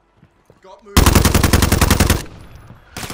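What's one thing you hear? A rifle fires a fast burst of loud shots.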